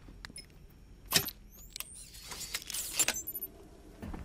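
Electricity crackles and buzzes from a wall panel.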